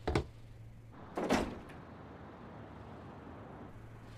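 A wooden window swings open with a creak and a bang.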